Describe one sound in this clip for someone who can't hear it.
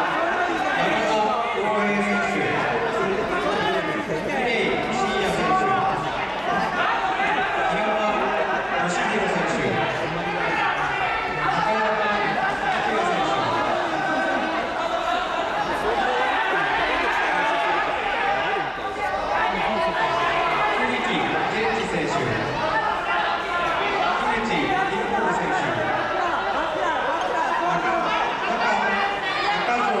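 Men and women shout and call out encouragement in a large echoing hall.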